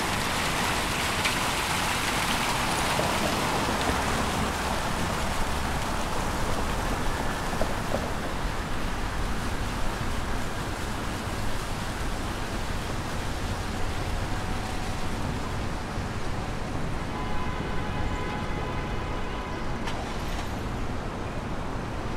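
Traffic hums steadily nearby, outdoors.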